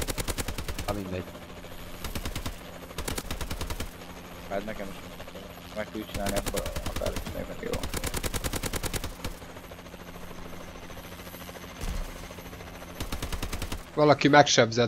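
Heavy rapid gunfire rattles in short bursts.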